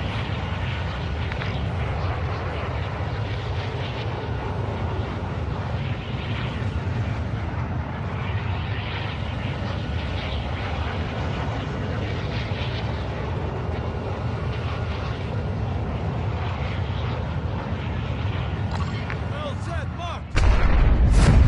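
A large aircraft's engines drone steadily.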